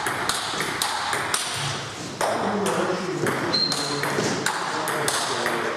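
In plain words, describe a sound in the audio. A ping-pong ball clicks sharply back and forth off paddles and a table.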